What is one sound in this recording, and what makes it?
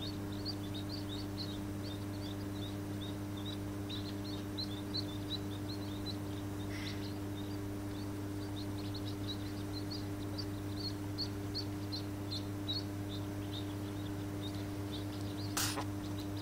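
Ducklings peep in high, rapid chirps close by.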